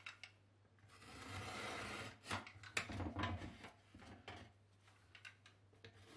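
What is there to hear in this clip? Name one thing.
A hand saw cuts through plasterboard.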